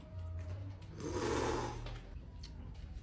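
A man crunches on crisp food while eating.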